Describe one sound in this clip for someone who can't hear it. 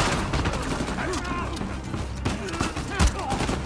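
A man grunts with effort while fighting.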